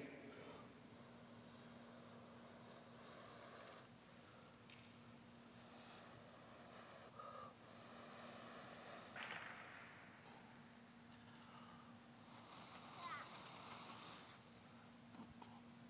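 A man breathes and blows in soft gusts close to a microphone.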